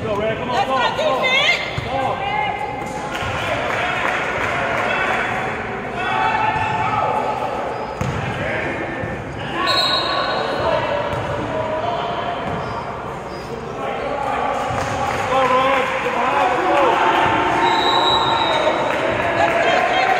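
Sneakers squeak on a hardwood court, echoing in a large gym.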